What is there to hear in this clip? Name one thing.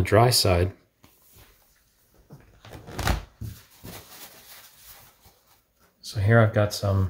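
A thin plastic sheet rustles softly as it is handled.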